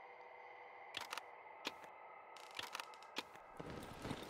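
Short clicks sound as menu items are selected.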